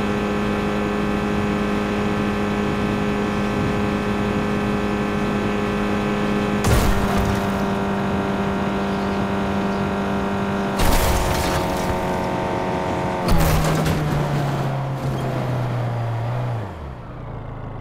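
A car engine roars at high speed, its pitch falling.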